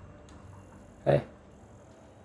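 A laser gun fires a short burst.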